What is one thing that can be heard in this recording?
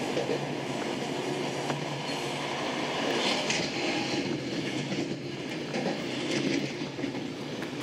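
A passenger train rolls along the tracks, heard from inside a carriage.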